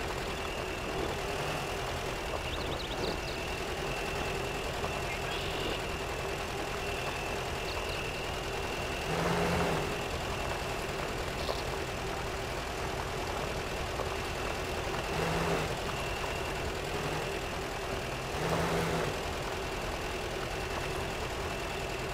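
An off-road truck's engine rumbles steadily as it crawls over rough ground.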